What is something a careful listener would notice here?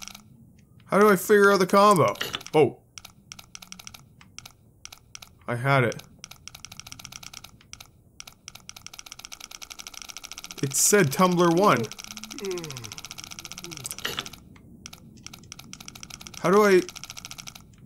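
A man speaks with animation close to a microphone, in short bursts.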